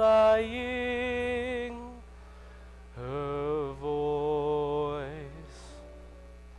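A young man sings loudly in a large echoing hall.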